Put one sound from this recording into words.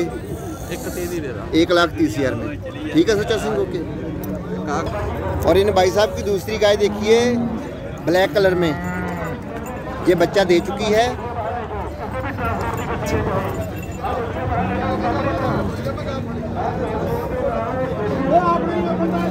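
Voices of a crowd murmur outdoors in the background.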